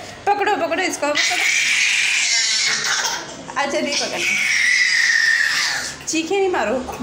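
A baby squeals and babbles happily close by.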